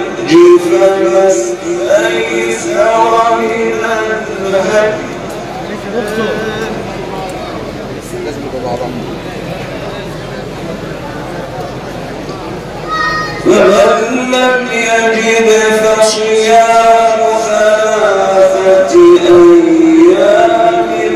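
A middle-aged man chants in long, drawn-out melodic phrases through a microphone and loudspeakers.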